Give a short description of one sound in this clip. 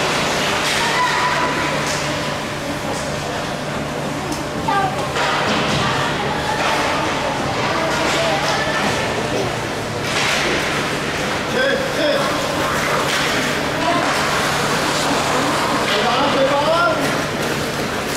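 Children shout across an echoing rink.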